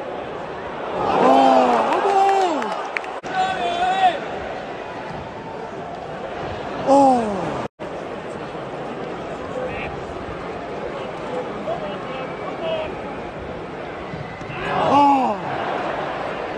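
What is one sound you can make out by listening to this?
Crowds of fans chant and sing loudly in bursts.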